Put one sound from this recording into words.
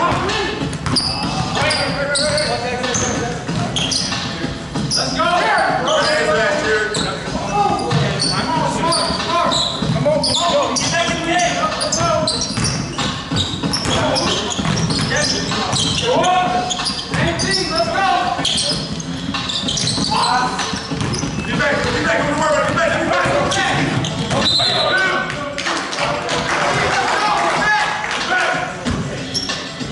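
Young men shout and call out to each other across an echoing hall.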